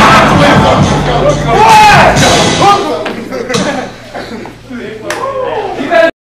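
Young men shout and talk loudly close by.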